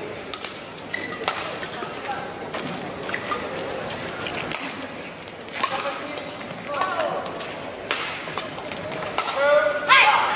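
Rackets hit a shuttlecock back and forth in a large echoing hall.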